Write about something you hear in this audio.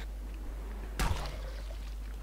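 A wooden club strikes a body with a heavy thud.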